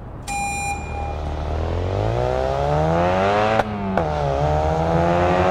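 A car engine revs up and rises in pitch as the car speeds along.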